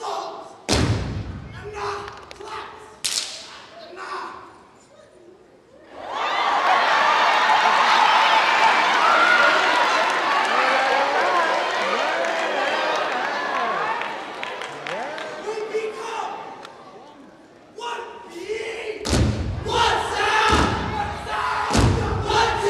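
A group of dancers stomps in unison on a stage floor in a large hall.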